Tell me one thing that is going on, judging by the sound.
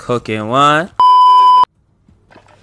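A steady high test tone beeps loudly.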